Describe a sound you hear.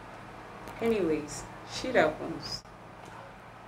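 A young woman speaks briefly and calmly up close.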